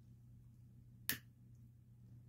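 A lighter clicks once as it is struck.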